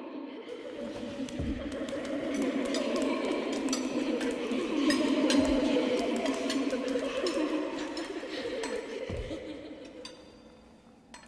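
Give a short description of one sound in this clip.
A crowd of voices chants in a large echoing hall.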